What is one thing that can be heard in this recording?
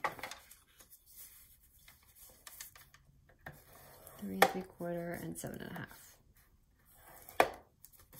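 A plastic tool scrapes along paper with a rough, scratching sound.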